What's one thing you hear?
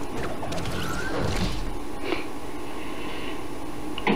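A glider snaps open with a rustle.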